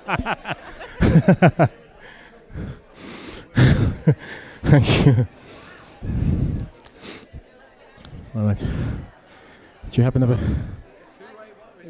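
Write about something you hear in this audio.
A crowd of people chatters and laughs.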